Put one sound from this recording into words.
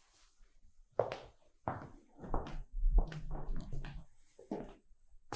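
High heels click on a hard floor.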